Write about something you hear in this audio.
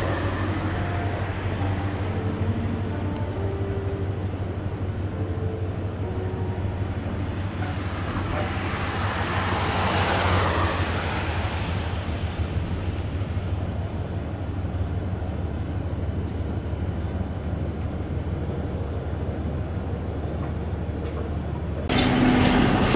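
A train rolls slowly past with a low steady rumble.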